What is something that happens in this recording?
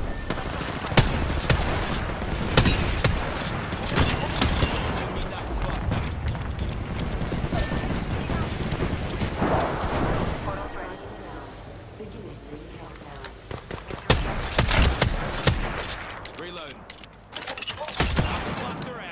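Rifle shots crack out one at a time.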